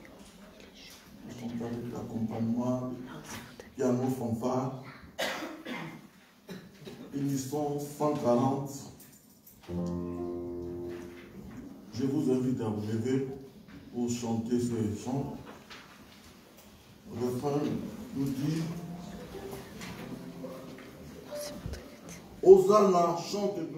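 Men sing through microphones and loudspeakers.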